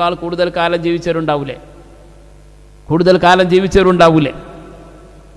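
A man chants in a melodic voice through a microphone.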